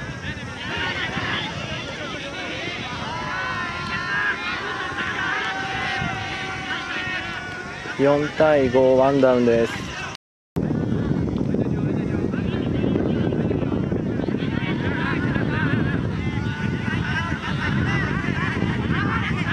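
A crowd of young men and women shouts and cheers across an open field.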